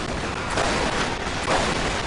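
A flamethrower roars with a steady rushing hiss.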